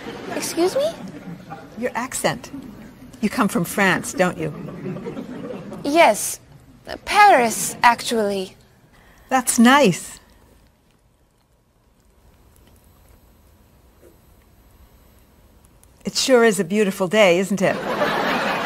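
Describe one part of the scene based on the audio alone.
An elderly woman speaks warmly and asks questions.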